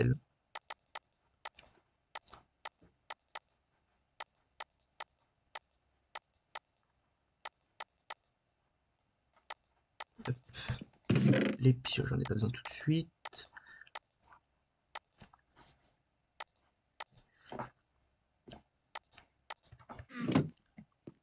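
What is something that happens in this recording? Short soft clicks tick at an uneven pace.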